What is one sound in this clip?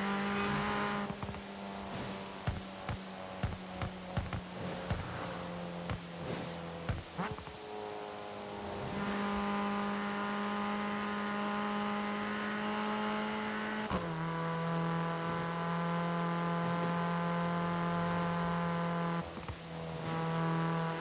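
A car engine's pitch drops and climbs again as gears change.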